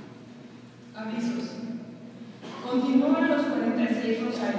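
A woman sings through a loudspeaker in an echoing hall.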